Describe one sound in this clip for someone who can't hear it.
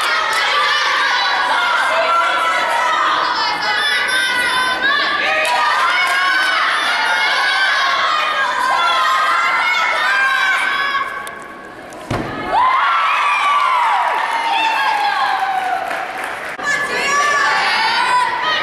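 Many young girls chatter and cheer in a large echoing hall.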